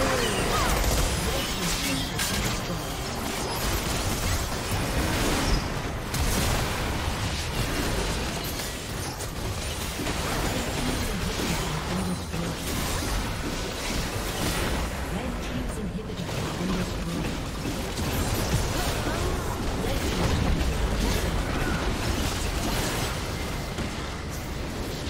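Spell effects crackle and boom in a busy fight.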